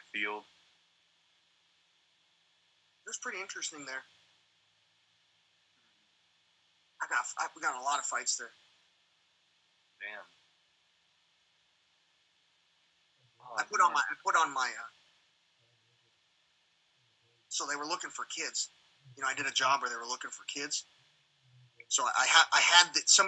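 A man speaks with animation over an online call, in short bursts.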